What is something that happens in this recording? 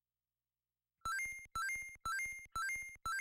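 Short electronic game beeps repeat quickly as a score tallies up.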